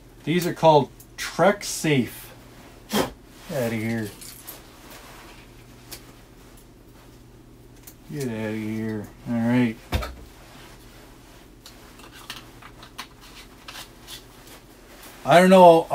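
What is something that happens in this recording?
A man talks calmly and close to the microphone, in short bursts.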